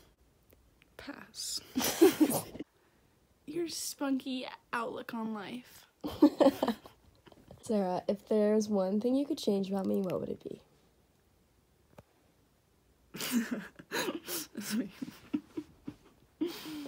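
A teenage girl laughs close by.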